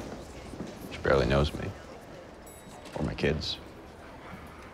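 A young man speaks softly.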